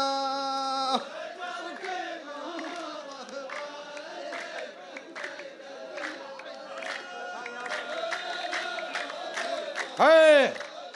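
A group of men chant together.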